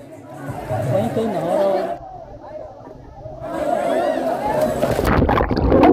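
Children shout in a busy outdoor pool.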